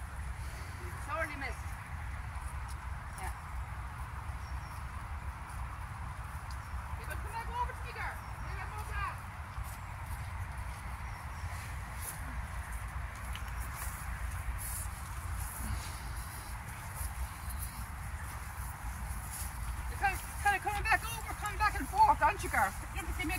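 An elderly woman speaks softly to horses nearby.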